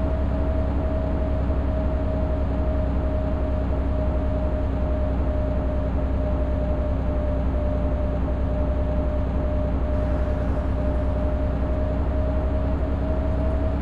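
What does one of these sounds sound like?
A diesel bus engine drones while cruising on a highway.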